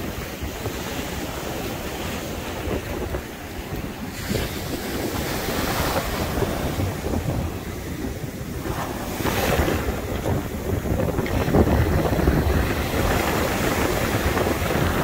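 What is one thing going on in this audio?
Waves wash up onto the shore and foam over the sand.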